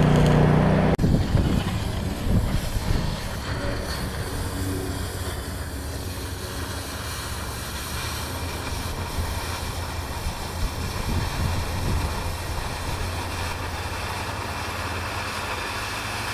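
A gas cutting torch hisses and roars steadily.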